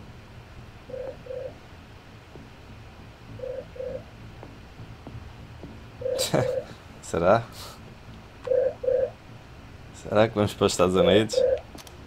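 A phone rings in short repeated double tones.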